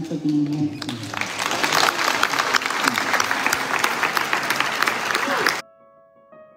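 A large crowd claps and cheers loudly.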